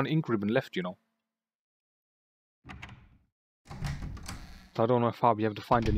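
A heavy door slowly creaks open.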